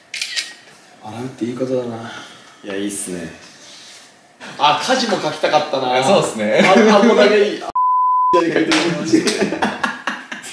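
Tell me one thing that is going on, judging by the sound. A second young man answers casually, close by.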